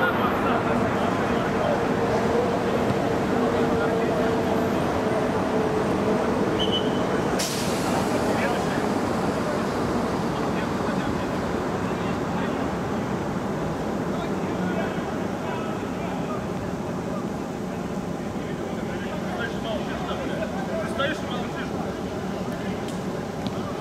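Spectators murmur and chat nearby.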